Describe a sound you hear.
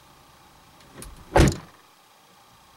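A car door thuds shut nearby.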